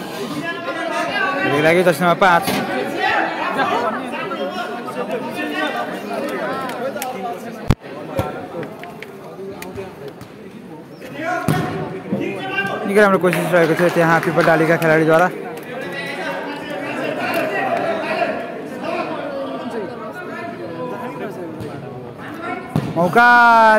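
Young men shout and call out to each other across an echoing indoor court.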